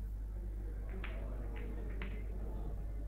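Billiard balls knock together with hard clacks.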